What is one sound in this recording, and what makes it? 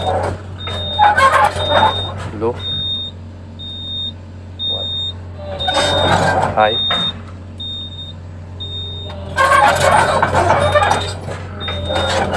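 A heavy machine's engine rumbles steadily from inside its cab.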